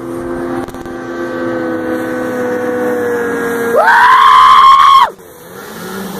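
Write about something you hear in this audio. A jet ski engine drones across the water, rising in pitch as it races closer and passes by.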